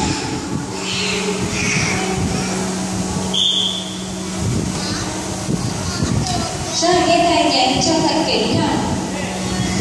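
Water splashes as dolphins leap and dive.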